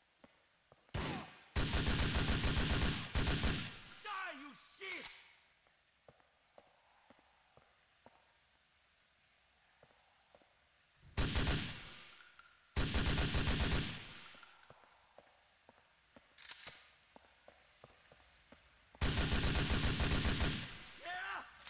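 An automatic rifle fires loud, rapid bursts of shots that echo.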